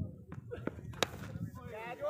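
A bat hits a cricket ball with a sharp crack.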